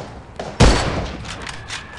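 A grenade bursts with a loud blast.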